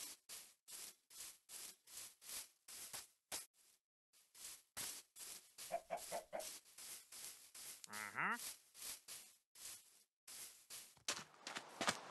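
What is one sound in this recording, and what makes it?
Footsteps crunch steadily across grass.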